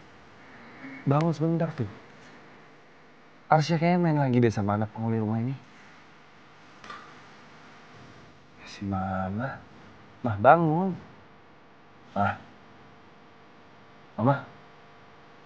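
A man speaks softly and tenderly close by.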